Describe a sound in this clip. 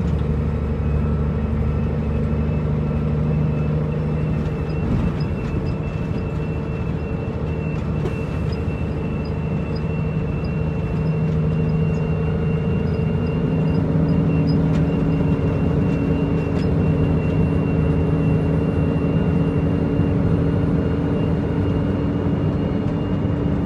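Loose parts of a truck cab rattle and clatter over a bumpy road.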